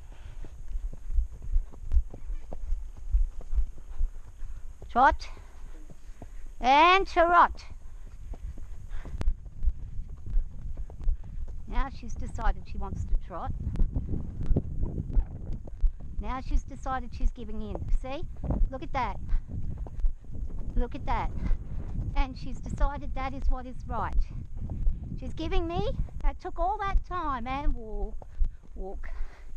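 A horse's hooves thud steadily on soft dirt.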